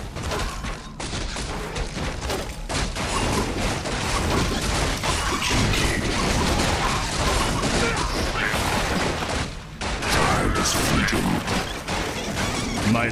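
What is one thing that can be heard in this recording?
Clashing weapons ring out in a busy battle.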